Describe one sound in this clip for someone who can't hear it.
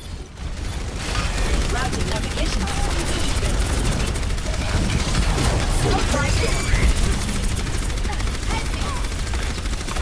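A sci-fi energy weapon fires a continuous crackling beam.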